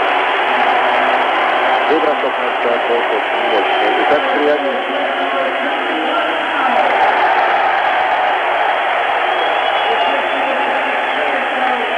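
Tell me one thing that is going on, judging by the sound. A large crowd cheers and roars loudly throughout.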